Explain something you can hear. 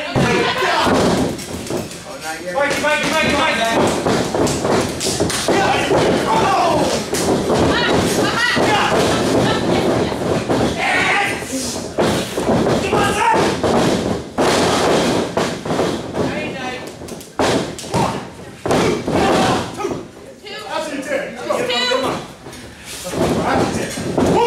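A crowd shouts and cheers in an echoing hall.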